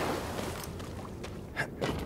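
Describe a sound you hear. Footsteps scrape on rock.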